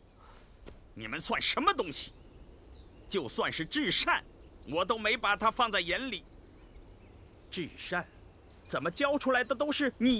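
An older man speaks sternly and slowly.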